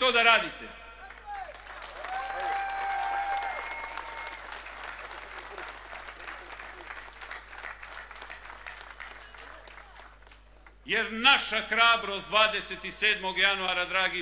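A man speaks forcefully into a microphone over loudspeakers in a large hall.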